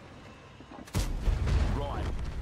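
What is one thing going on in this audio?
A tank cannon fires with a sharp boom.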